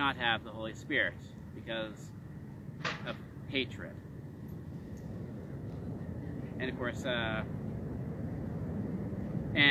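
A man speaks calmly and clearly outdoors, close by.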